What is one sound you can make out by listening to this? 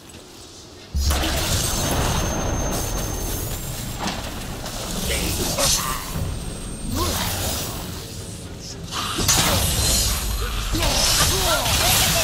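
A magical portal roars and rumbles with a deep whoosh.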